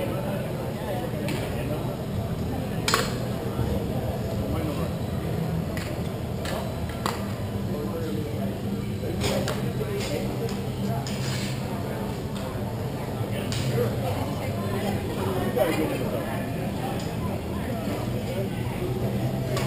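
Skates scrape and glide across the ice.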